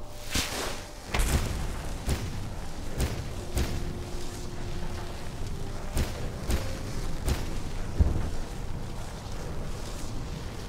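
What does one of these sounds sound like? Footsteps crunch on gravel at a steady walking pace.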